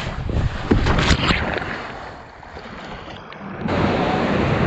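A paddle splashes through water.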